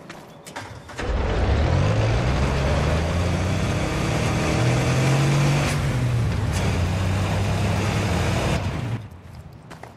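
A vehicle engine rumbles and revs while driving.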